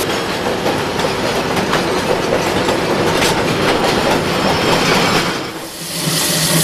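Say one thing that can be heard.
Freight wagons rumble and clatter past on rails.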